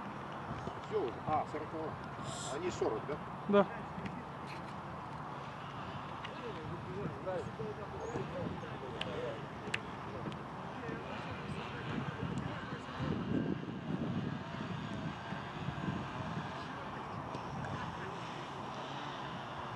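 Football players shout and call to each other on an open field outdoors.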